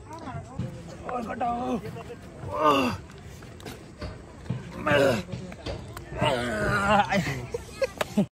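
A young man grunts and strains with effort close by.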